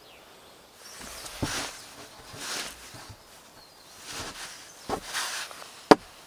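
A log scrapes and rustles through dry grass.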